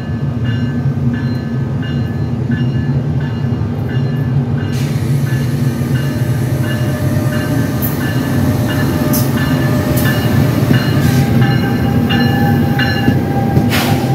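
A locomotive bell rings repeatedly.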